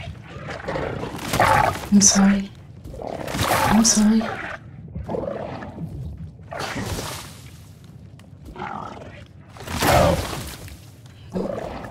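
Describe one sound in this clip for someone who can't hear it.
A heavy blade strikes flesh with wet thuds.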